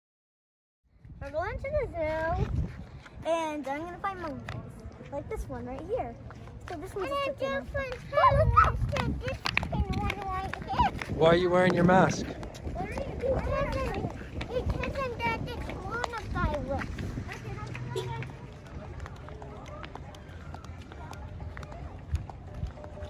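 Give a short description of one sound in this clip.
Young girls talk and call out with animation outdoors.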